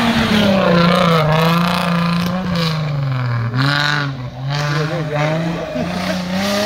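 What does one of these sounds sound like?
An off-road vehicle's engine roars and revs up and down as it climbs over rough ground.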